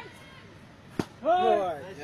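A baseball smacks sharply into a catcher's glove.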